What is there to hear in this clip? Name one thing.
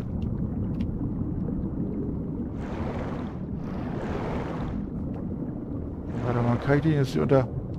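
A low, muffled underwater rumble drones steadily.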